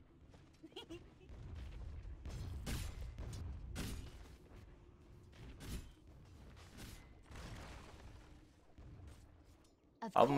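Game fight effects clash and whoosh.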